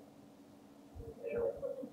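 A young man speaks briefly.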